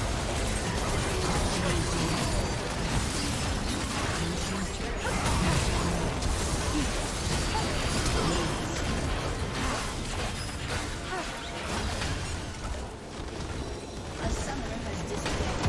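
Spell blasts and weapon hits crackle and boom in a busy battle.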